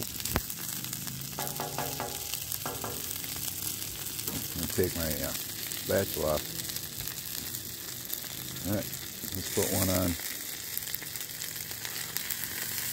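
Burger patties sizzle steadily on a hot griddle.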